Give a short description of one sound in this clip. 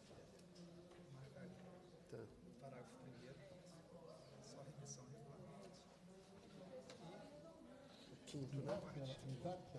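Men talk quietly in a room, heard through a microphone.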